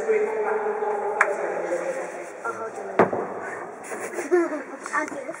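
Men talk casually in a large echoing hall.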